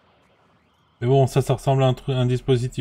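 A young man speaks loudly and with animation into a microphone, close by.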